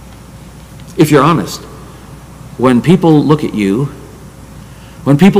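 An older man speaks with emphasis into a microphone, in pauses.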